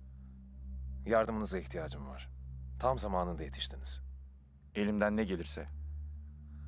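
A middle-aged man speaks calmly and close.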